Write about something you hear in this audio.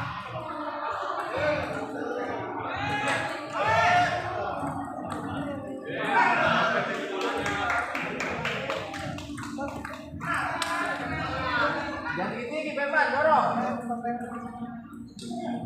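A ping pong ball clicks back and forth on a table and paddles.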